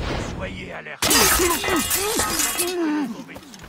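A sword slashes and strikes a man.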